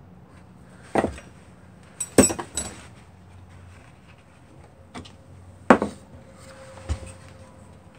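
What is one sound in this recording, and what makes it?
Hands knock and clunk a metal case.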